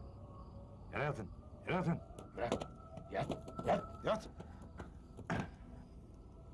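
Several men shout and cry out nearby.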